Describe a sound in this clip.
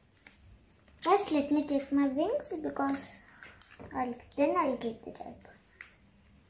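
A young girl speaks calmly nearby.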